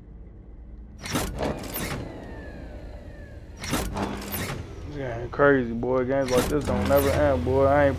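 A heavy metal lever is pulled with loud mechanical clunks.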